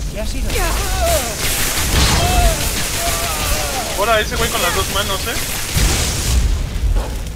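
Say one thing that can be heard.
Lightning crackles and sizzles in loud bursts.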